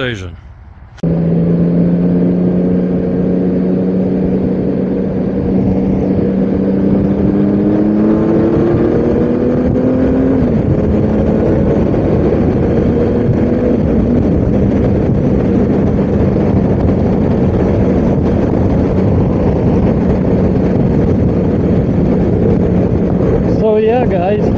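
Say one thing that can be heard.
A motorcycle engine drones steadily, rising in pitch as it speeds up.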